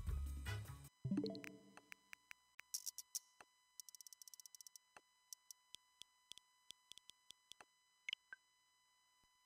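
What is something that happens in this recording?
Short electronic menu blips tick one after another, sometimes in quick bursts.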